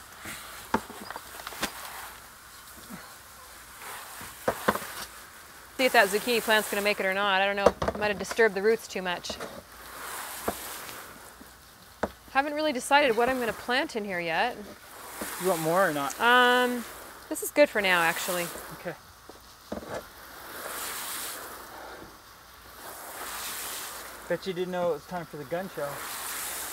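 Water sprays from a hose onto concrete.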